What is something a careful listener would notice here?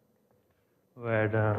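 A man begins speaking calmly.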